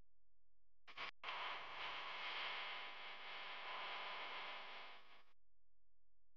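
Water laps against a moving boat.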